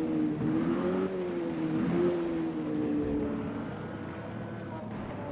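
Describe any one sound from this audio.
A small boat engine drones and slowly drops in pitch as it slows.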